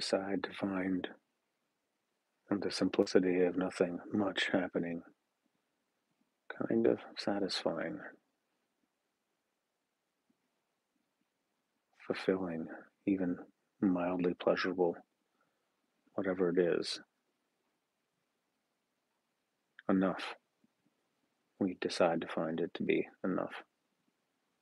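A middle-aged man speaks calmly and slowly close to a microphone, with long pauses.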